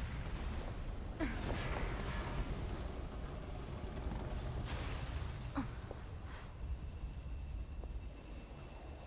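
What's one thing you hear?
A fire roars with a deep rumble.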